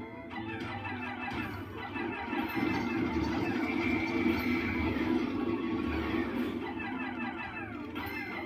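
Lively video game music plays through a television speaker.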